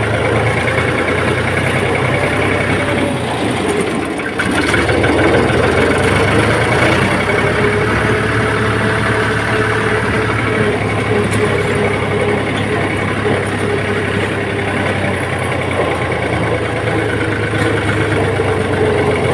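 A tractor's diesel engine chugs steadily up close.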